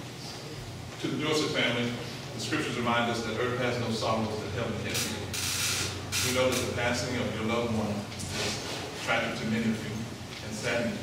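A middle-aged man speaks with animation, in a slightly echoing hall.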